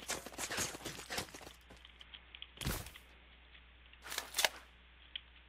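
Footsteps scuff and thud on concrete.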